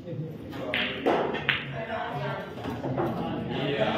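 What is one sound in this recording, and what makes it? Billiard balls knock against each other.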